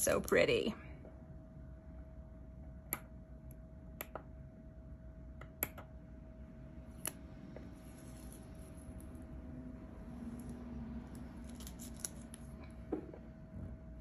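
A small tool taps and scrapes lightly on a hard surface.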